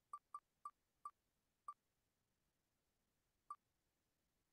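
A spinning prize wheel ticks, slowing down.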